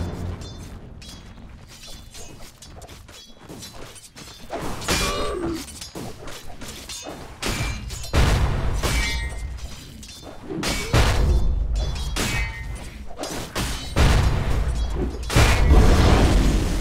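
Game fighters clash with sharp hits and magical blasts.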